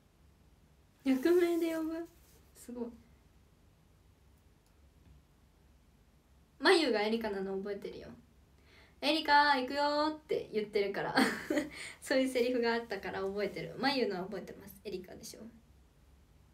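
A young woman speaks softly and close by, in short bursts with pauses.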